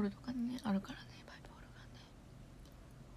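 A young woman speaks softly, close to a microphone.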